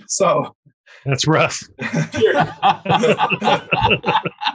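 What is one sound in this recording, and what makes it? A second man speaks cheerfully over an online call.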